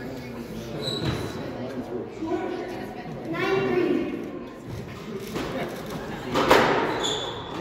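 A squash racket strikes a ball, echoing off the walls.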